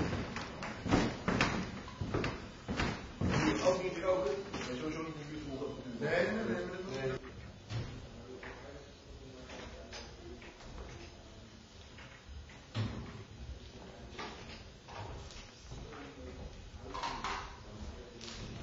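Footsteps thud on a wooden stage in a large echoing hall.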